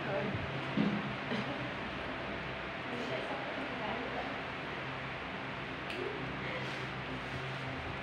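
Small wooden beads rattle in a plastic cup.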